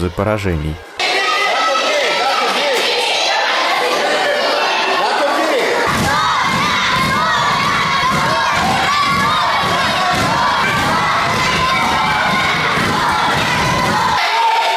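A crowd of children cheers and shouts excitedly in an echoing hall.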